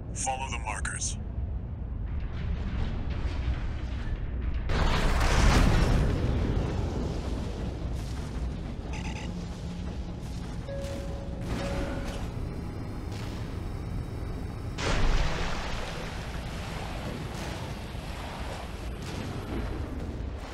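Thrusters rumble steadily.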